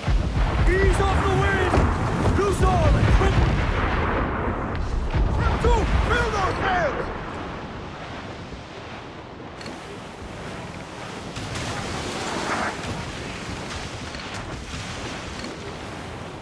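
Ocean waves roll and crash against a ship.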